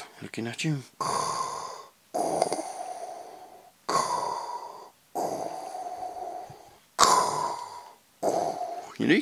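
A toy helmet plays a loud, hissing mechanical breathing sound in bursts.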